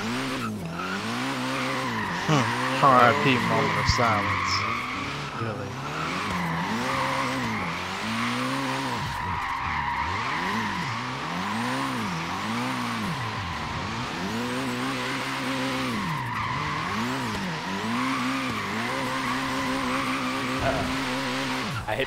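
A car engine revs up and down hard.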